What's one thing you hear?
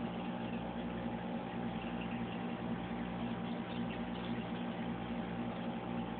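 An aquarium air pump hums steadily.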